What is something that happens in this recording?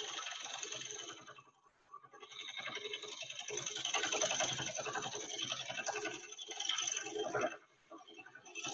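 A lathe hums as it spins.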